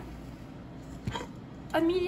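A metal pot clinks as a hand grips its rim.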